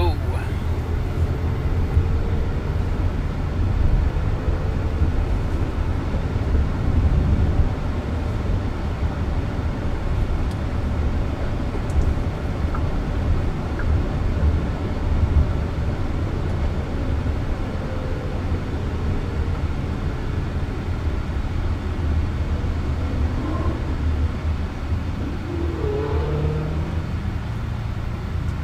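A car hums steadily as it drives along a road, heard from inside.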